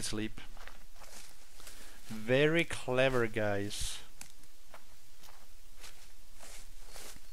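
Footsteps crunch through dry leaves.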